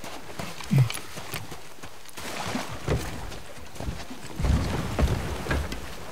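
A wooden boat scrapes over sand into the water.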